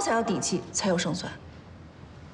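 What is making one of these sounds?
A woman speaks firmly and close by.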